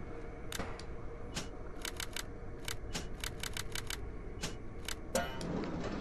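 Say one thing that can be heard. Combination lock dials click as they turn, one notch at a time.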